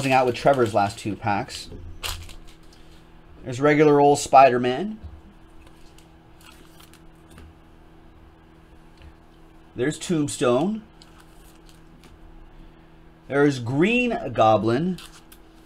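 Trading cards shuffle and flick in hands.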